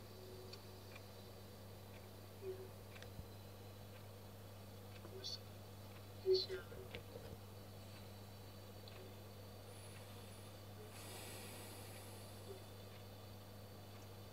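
A man speaks faintly and tensely through a small television loudspeaker.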